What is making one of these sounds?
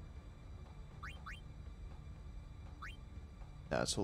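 Short, soft electronic blips sound a few times.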